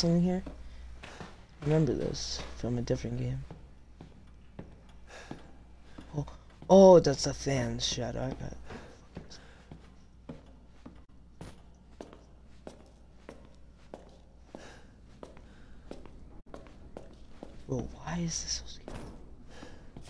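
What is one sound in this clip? Footsteps thud on a creaky wooden floor indoors.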